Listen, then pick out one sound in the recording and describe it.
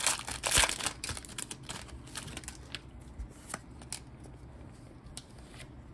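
Playing cards rustle and slide against each other in hands.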